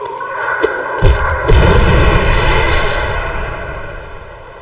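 A creature bursts apart with a loud rumbling crash.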